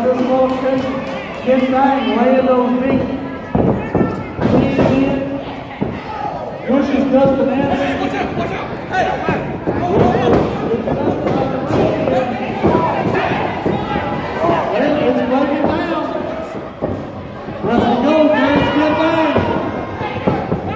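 A crowd chants and cheers loudly in an echoing hall.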